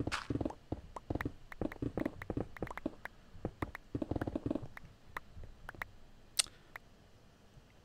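Stone blocks crack and break in quick, repeated knocks.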